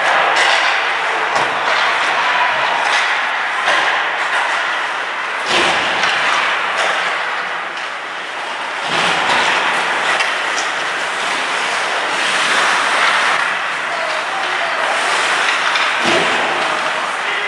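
Ice skates scrape and hiss across an ice rink.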